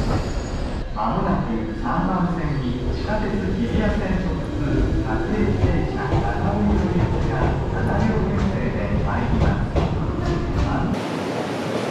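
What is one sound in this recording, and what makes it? An electric train pulls away from a platform with a whining motor that rises and falls in pitch.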